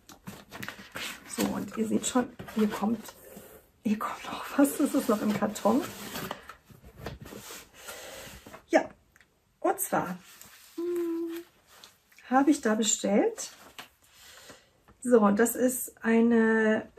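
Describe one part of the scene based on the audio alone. A middle-aged woman talks calmly and closely into a microphone.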